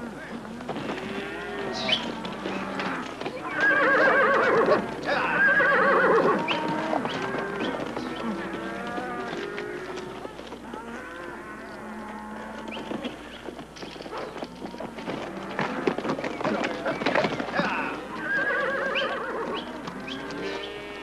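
Many hooves thud and trample on dirt.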